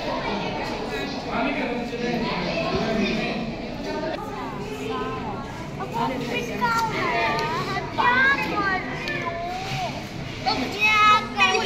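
Children chatter and call out nearby in an echoing hall.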